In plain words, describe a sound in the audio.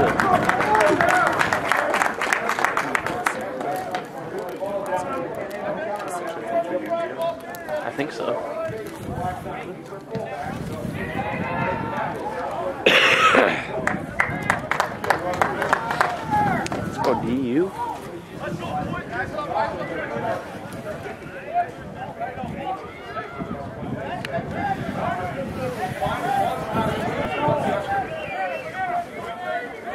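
Rugby players call out to each other across an open field.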